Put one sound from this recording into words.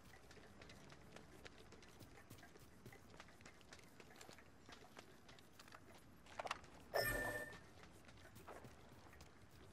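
Quick footsteps run over sand and rock.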